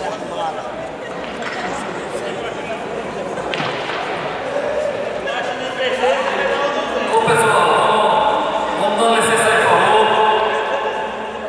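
A crowd of men chatters loudly in a large echoing hall.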